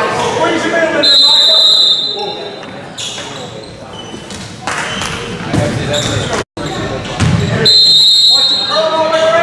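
Basketball sneakers squeak on a hardwood court.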